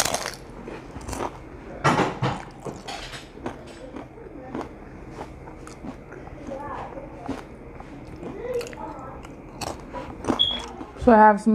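A young woman chews crunchy chips close to a microphone.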